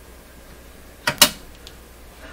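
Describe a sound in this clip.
A hand knocks sharply against a metal chassis.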